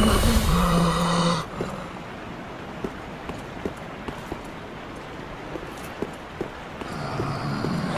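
Armoured footsteps run over stone.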